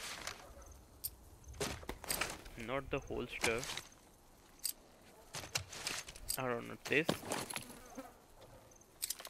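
Metal gun parts click and clack.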